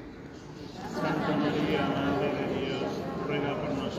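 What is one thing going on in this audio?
A man sings a slow chant, echoing in a large hall.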